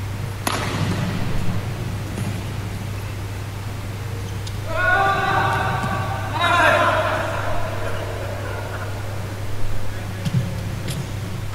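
A shuttlecock is struck sharply with a racket.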